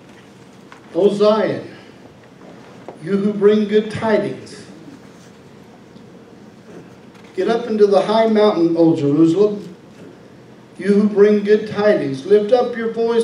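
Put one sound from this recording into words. A middle-aged man speaks with emphasis into a microphone, heard through loudspeakers in a large room.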